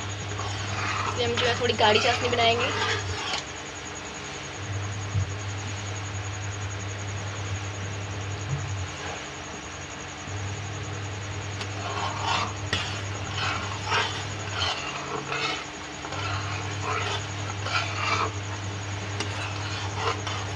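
A spoon stirs and scrapes in a pot.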